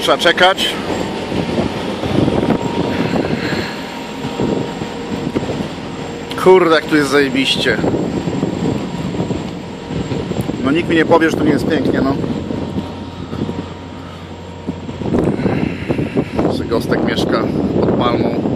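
Wind gusts outdoors, buffeting the microphone with a low rumble.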